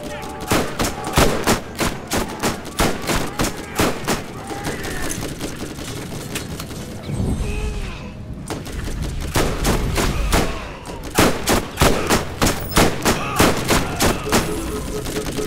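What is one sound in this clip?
A rifle fires shots in rapid bursts.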